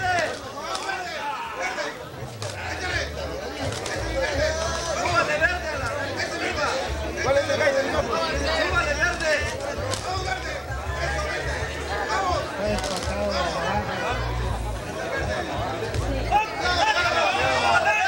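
A crowd of men shouts and cheers excitedly nearby.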